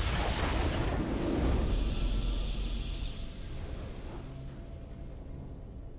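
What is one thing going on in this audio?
A triumphant fanfare plays.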